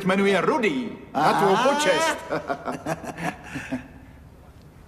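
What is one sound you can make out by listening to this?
A middle-aged man speaks loudly and with animation.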